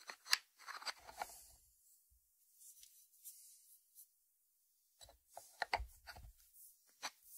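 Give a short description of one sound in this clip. A ceramic dish knocks on a wooden board.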